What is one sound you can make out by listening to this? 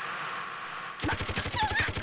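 A minigun fires a rapid burst of shots.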